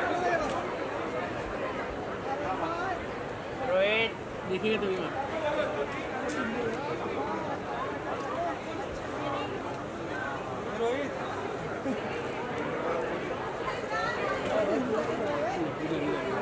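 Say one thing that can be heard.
Women laugh and shriek with excitement.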